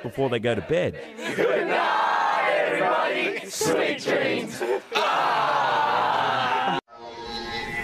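A group of young men and women cheer and shout outdoors.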